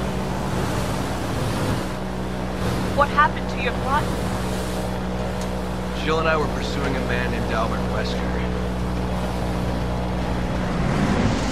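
An airboat engine drones steadily.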